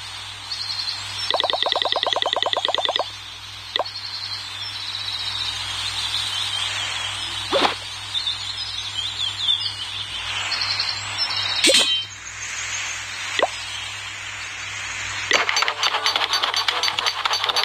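Short electronic game chimes and clicks play.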